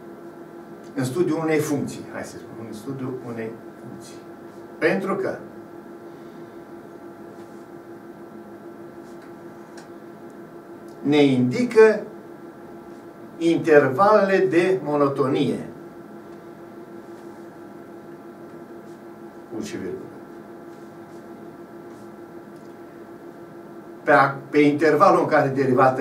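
An elderly man speaks calmly and close to a microphone, in short bursts with pauses.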